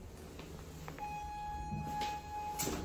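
An elevator gives a steady electronic beep.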